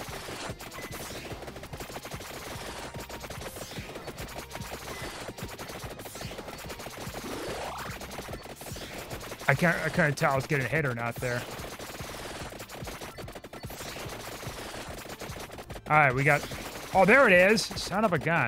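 Rapid retro game sound effects crackle and ping without pause.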